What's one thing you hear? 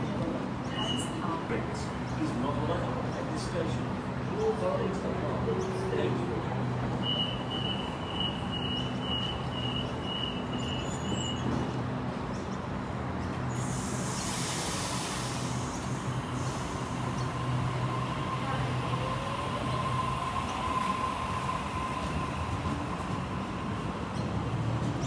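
A train idles with a low, steady hum.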